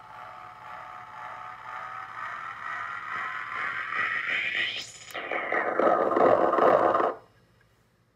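A synthesizer drone rises in pitch and swells louder, then bursts into a harsh buzzing roar that cuts off abruptly.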